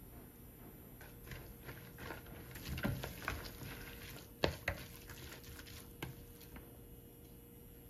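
A wooden spoon scrapes and stirs food in a glass bowl.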